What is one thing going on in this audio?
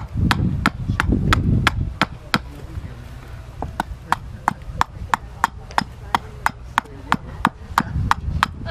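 A small axe chops rhythmically into wood, with sharp knocks.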